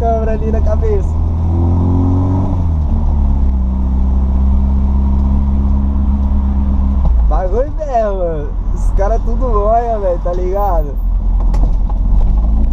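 A car engine rumbles steadily, revving up and then settling as the car drives.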